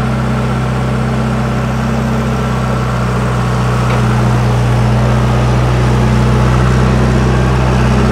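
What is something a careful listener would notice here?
A loader bucket scrapes and pushes through dirt.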